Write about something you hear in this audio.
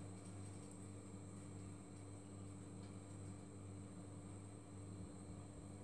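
Thick liquid trickles softly into a mould.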